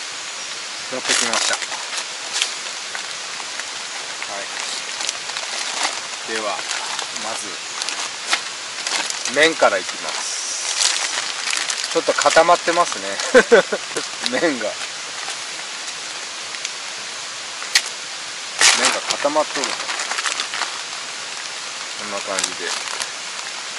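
Plastic bags crinkle and rustle close by.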